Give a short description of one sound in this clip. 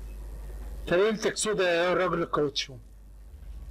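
A man cries out loudly, close to a microphone.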